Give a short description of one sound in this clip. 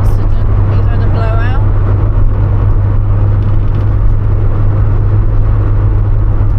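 A car engine hums steadily with loud road and wind noise from inside the car.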